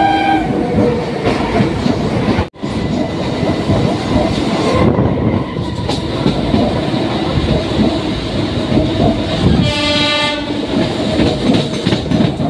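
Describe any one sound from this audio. Train wheels rumble and clatter steadily over the rails.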